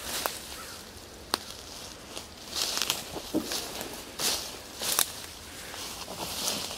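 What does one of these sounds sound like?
Footsteps rustle through dense undergrowth, with twigs snapping underfoot.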